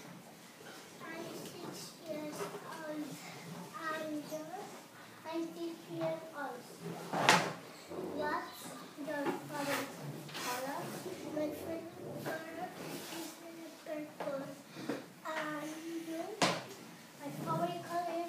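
A young girl speaks nearby in an ordinary conversational voice.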